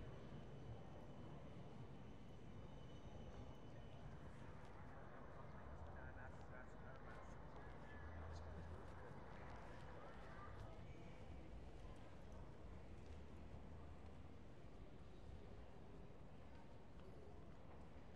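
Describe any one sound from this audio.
A quiet town street hums steadily outdoors, with a low distant rumble.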